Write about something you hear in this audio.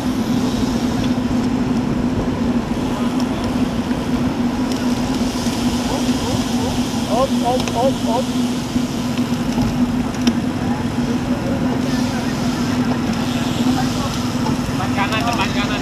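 Wind rushes steadily past a moving bicycle.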